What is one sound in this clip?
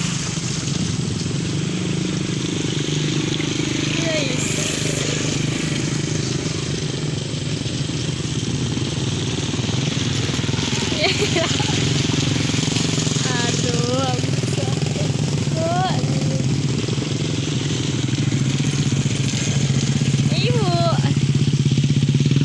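Motorcycle engines hum steadily as the bikes ride slowly past close by.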